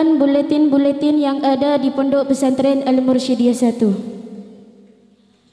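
A group of young girls sing together loudly into a microphone.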